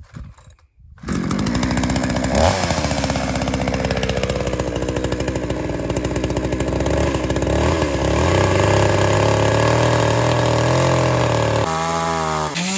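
A chainsaw engine runs and revs loudly.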